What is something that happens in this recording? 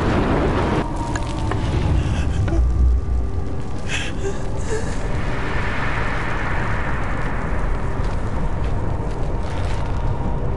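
A fire roars and crackles with a deep rumble.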